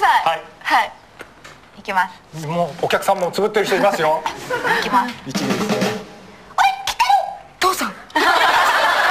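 Young women talk with animation close to a microphone.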